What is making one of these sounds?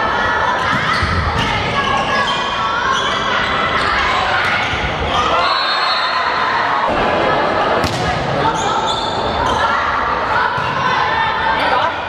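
A volleyball smacks against hands.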